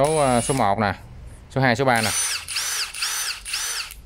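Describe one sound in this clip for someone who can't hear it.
A battery clicks into a cordless tool.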